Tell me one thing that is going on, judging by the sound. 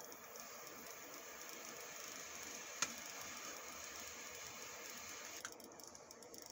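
A torch lighter hisses steadily, then clicks off.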